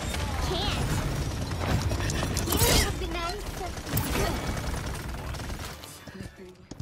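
Energy blasts crackle and boom in quick bursts.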